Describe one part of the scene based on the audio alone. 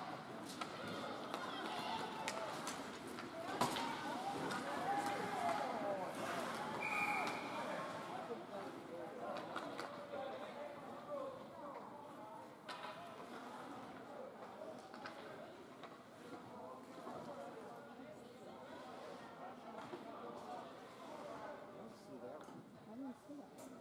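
Hockey sticks clack against a puck on the ice.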